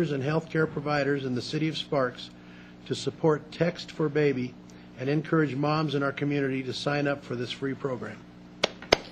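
An elderly man speaks steadily into a microphone, reading out.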